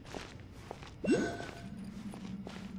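A bright magical whoosh bursts out and rings briefly.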